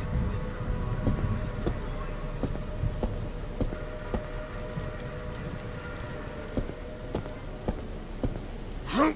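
Footsteps tread steadily on wet pavement.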